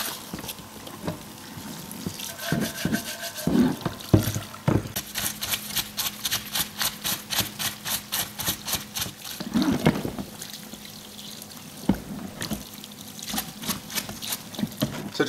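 Cleaning fluid splashes and sloshes in a tub.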